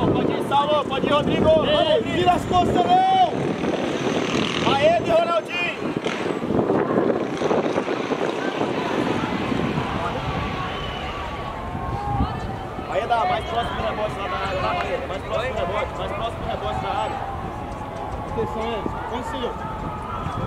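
Spectators talk and call out from nearby stands.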